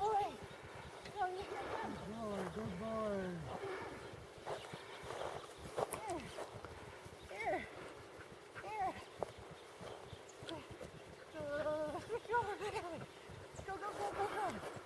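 A woman calls out commands to a dog from a distance, outdoors.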